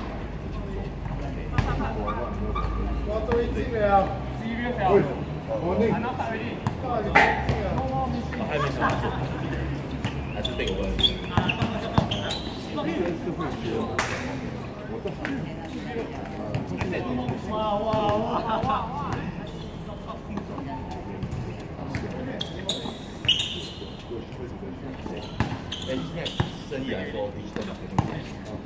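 A basketball bounces on a hard outdoor court.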